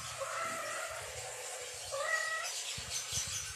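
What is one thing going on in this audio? A kitten meows nearby.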